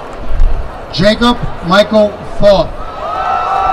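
A crowd cheers and whistles outdoors.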